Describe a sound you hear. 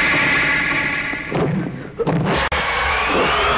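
A body thuds heavily onto a hard floor.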